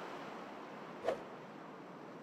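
A golf club swishes through the air.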